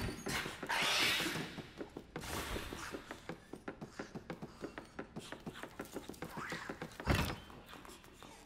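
Quick footsteps thud on wooden stairs and floorboards.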